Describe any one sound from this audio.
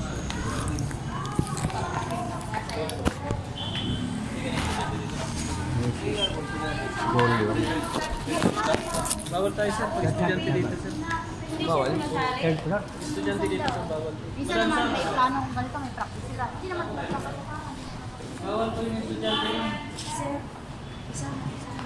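Several women talk and chatter nearby.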